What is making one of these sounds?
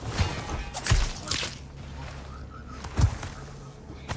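Heavy blows thud sharply during a struggle.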